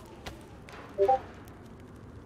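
A short electronic chime sounds as an item is picked up.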